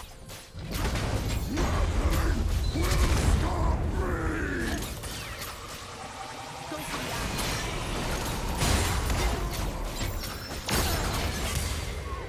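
Spell effects blast and crackle in a video game battle.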